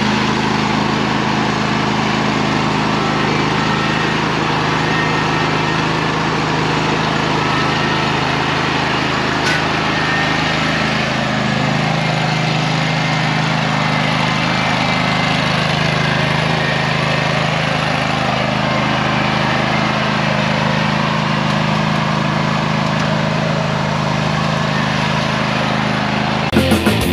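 An engine hums steadily close by.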